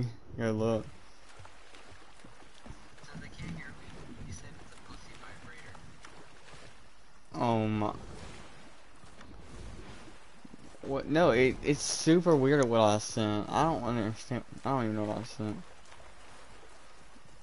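Water splashes softly as a swimmer paddles along.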